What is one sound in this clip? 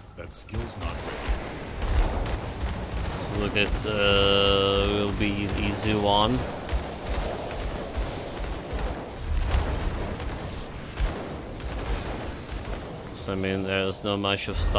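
Magic spells crackle and whoosh in quick bursts of fighting.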